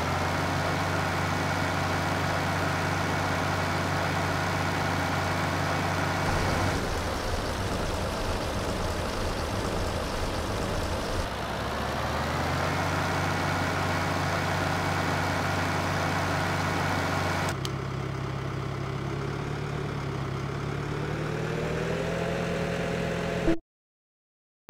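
A tractor engine hums steadily and rises and falls in pitch as it drives.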